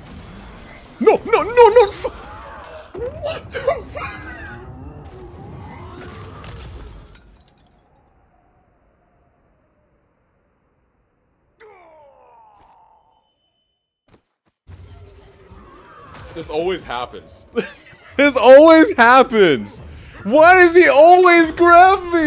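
A young man shouts out loudly in excitement.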